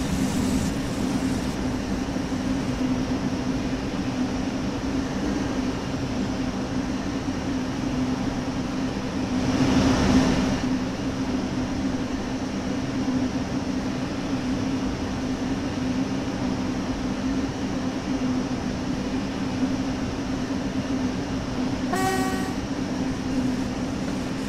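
A train's motor hums steadily as it rolls along the rails.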